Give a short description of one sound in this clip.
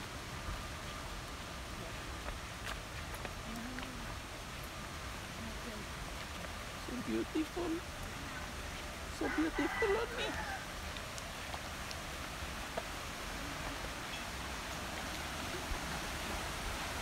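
A shallow river rushes and burbles steadily over rocks.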